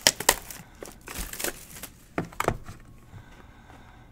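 Plastic wrap crinkles and rustles as hands handle a box.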